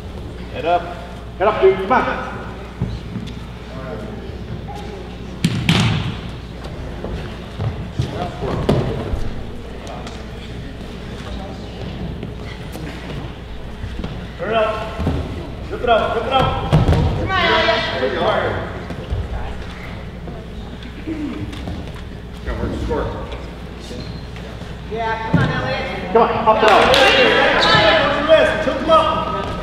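Wrestlers' bodies thump and scuffle on a mat.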